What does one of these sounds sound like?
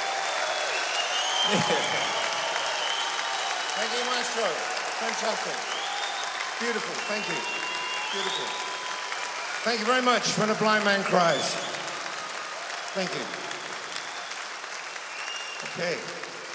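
A large crowd cheers and claps.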